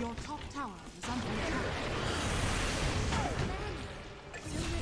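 Spell blasts and clashing noises come from a video game.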